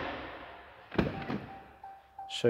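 A vehicle door latch clicks open.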